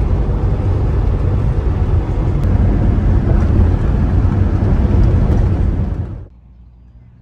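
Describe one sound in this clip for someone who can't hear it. A truck's engine and tyres rumble loudly on the highway.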